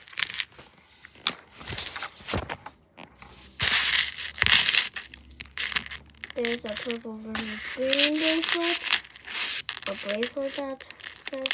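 Plastic beads click and clack against each other.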